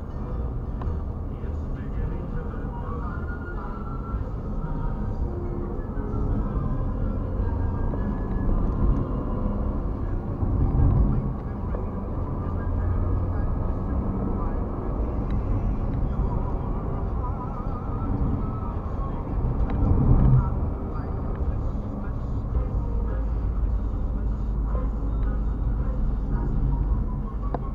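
Tyres rumble on the road throughout.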